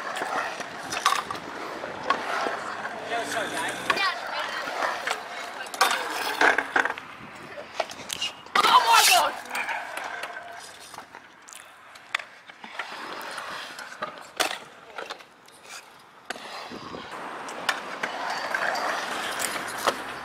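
Scooter wheels roll and clatter on concrete.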